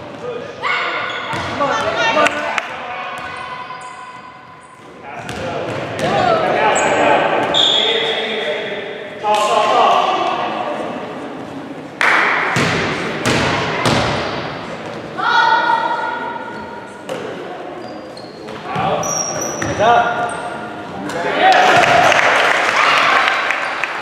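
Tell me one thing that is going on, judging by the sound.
A basketball bounces on a hard floor, echoing in a large hall.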